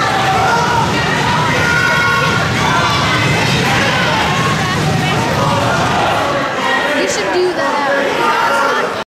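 Many voices of teenagers and adults chatter in a large echoing hall.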